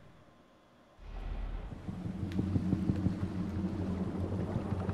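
Fire roars and rumbles.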